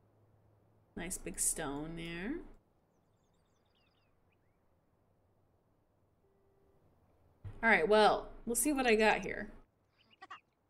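A young woman talks with animation into a headset microphone, close up.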